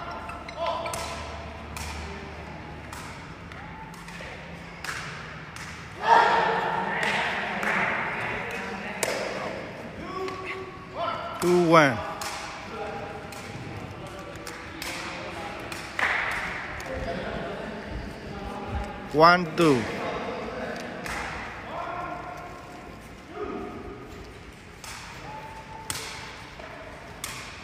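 A sepak takraw ball is kicked back and forth, each kick a sharp thud in a large echoing hall.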